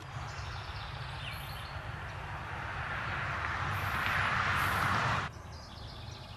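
Wind gusts and rustles through trees outdoors.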